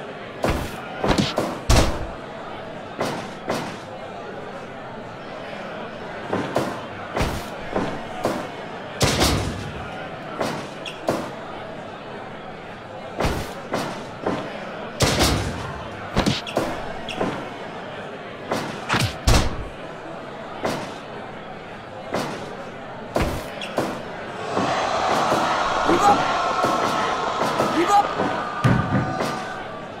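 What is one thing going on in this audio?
A large crowd cheers in a big arena.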